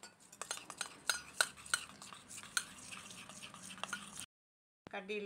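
A spoon scrapes and clinks against a metal bowl while stirring batter.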